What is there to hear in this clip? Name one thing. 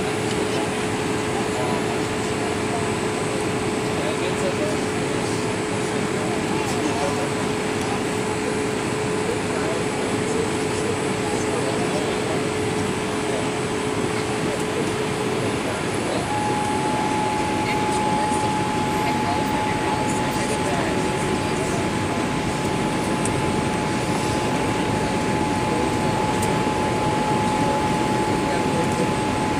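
Jet engines roar steadily with a loud rushing of air, heard from inside an airliner cabin.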